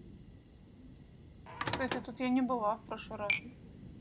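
A microwave door opens with a clunk.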